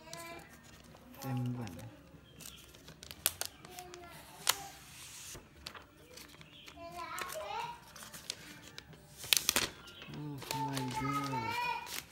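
Thin plastic film crinkles and rustles.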